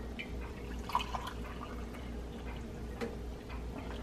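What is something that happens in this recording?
Hot water pours into a mug.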